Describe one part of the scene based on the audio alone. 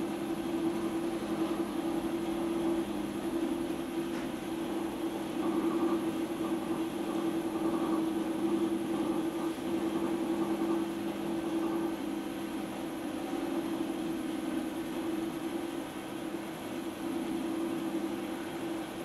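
A potter's wheel hums steadily as it spins.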